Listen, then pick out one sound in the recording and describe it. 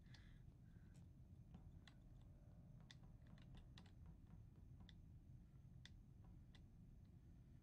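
Soft footsteps tap at an even pace.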